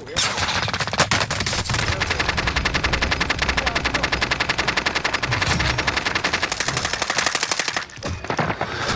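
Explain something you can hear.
Rapid gunfire rattles in quick bursts.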